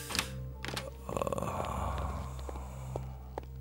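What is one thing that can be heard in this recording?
A door opens.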